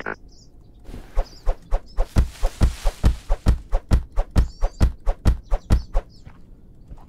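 An axe chops repeatedly into wood with quick, sharp knocks.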